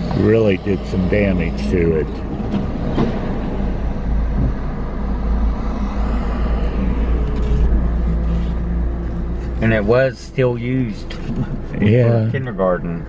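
A car drives along with a low, steady rumble from inside.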